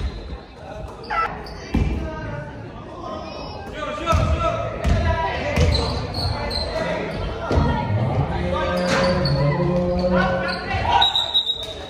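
Shoes squeak sharply on a wooden court in a large echoing hall.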